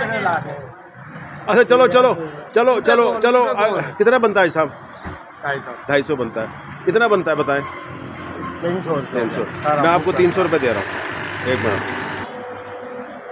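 Two elderly men talk with animation close by.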